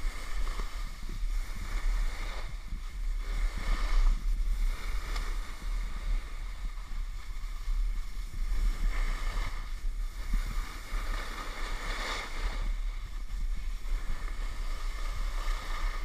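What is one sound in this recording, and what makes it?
Wind rushes and rumbles against a microphone.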